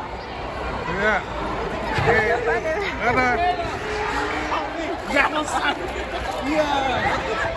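Young men shout and laugh excitedly close by.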